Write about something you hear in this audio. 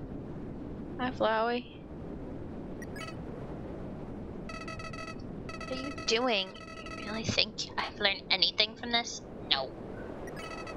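A young woman speaks with animation, close to a headset microphone.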